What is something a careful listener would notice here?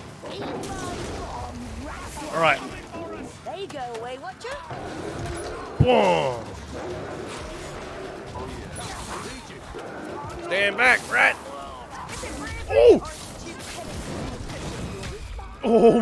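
Blades slash and clang against enemies.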